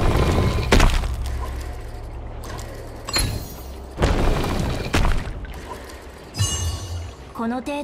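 Heavy stone blocks slide and thud into place.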